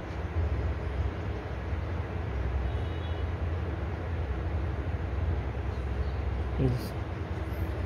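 A man talks quietly on a phone nearby.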